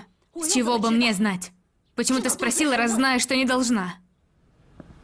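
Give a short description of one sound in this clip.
A woman speaks sharply and close by.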